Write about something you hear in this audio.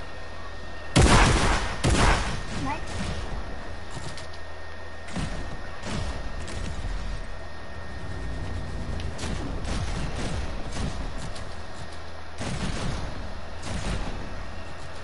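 Short sharp bursts of game weapon fire ring out.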